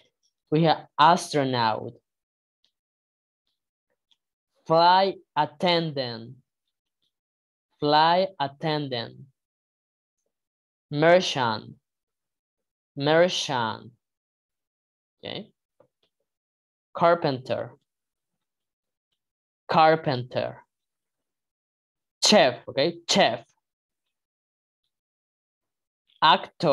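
A man reads out single words one at a time, with pauses, over an online call.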